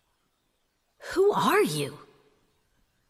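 A young woman speaks quietly and anxiously.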